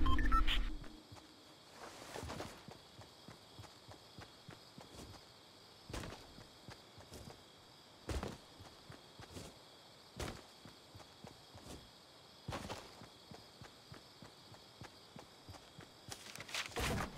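A game character's footsteps run on grass.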